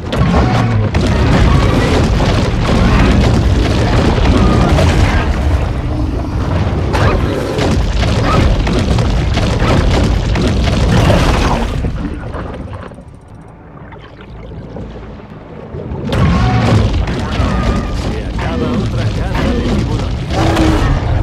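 A large shark bites with heavy, crunching thrashes.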